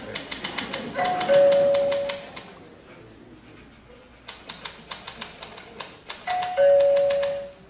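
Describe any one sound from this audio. A typewriter bell dings.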